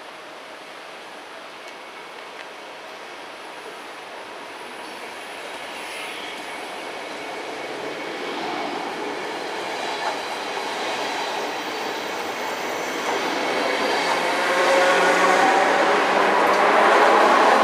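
A train rumbles past close by, growing louder.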